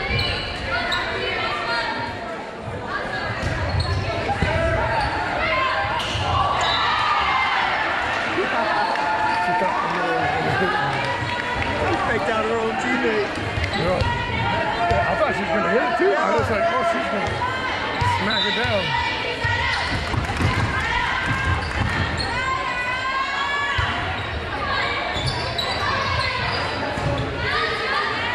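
Young women on a volleyball team call out and chatter in a large echoing gym.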